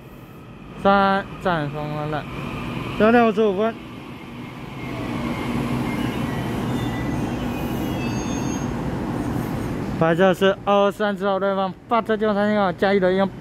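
A train rolls slowly through an echoing underground station with a low rumble.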